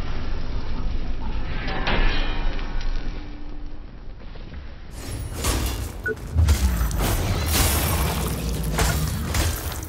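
Heavy blows strike and clang in a fight.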